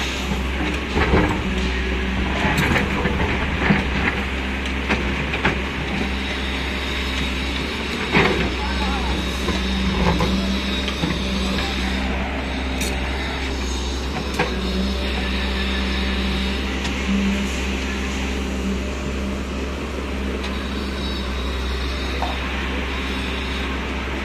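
An excavator bucket scrapes and thuds into soil and rocks.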